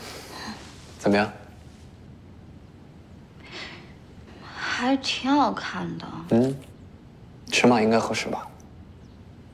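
A young man speaks softly and playfully, close by.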